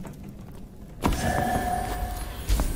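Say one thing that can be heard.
A magical spell hums and shimmers.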